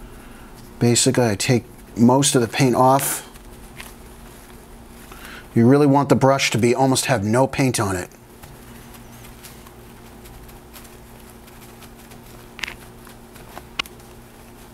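A small paintbrush dabs and scrapes softly against a paper towel.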